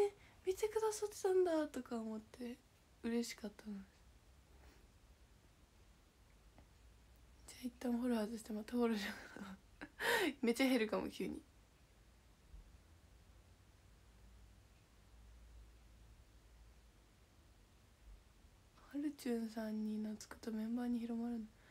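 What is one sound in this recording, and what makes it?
A young woman talks casually and close to a microphone, with pauses.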